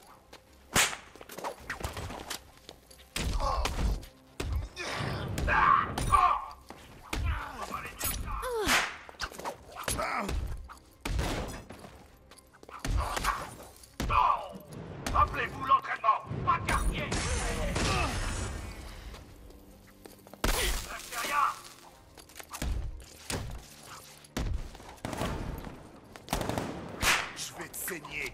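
Punches and kicks land with heavy thuds in a street brawl.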